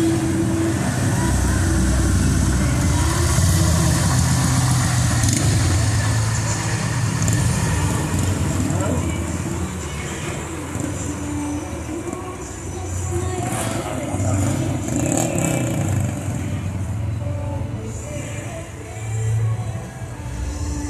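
Car engines idle and rumble in slow traffic outdoors.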